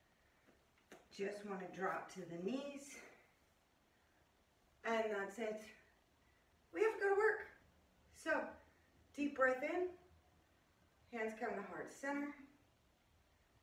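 A woman speaks calmly and clearly close by, in short phrases with pauses.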